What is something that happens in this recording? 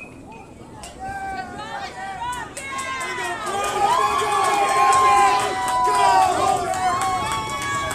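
Young players shout and cheer excitedly.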